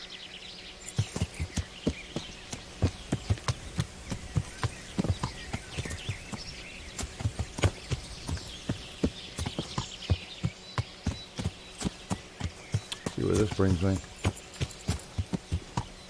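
A horse's hooves clop steadily over grass and dirt.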